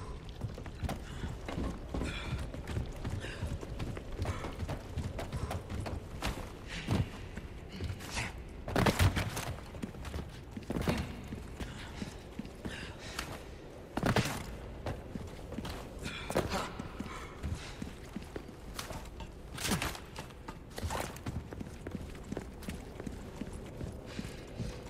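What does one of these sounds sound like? Footsteps thud on creaking wooden boards.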